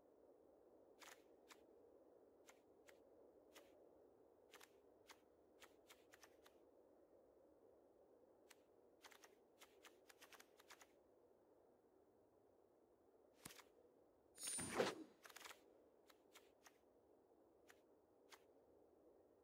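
Soft game clicks tick as cards are picked.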